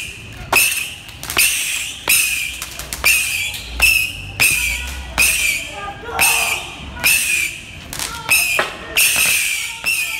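Firecrackers go off one after another with sharp bangs and hissing crackle.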